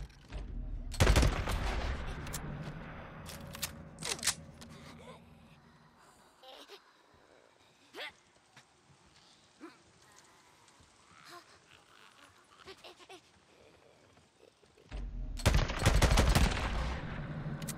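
An automatic rifle fires rapid bursts of loud gunshots close by.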